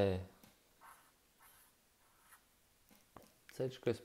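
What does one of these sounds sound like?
A marker pen scratches and squeaks on paper.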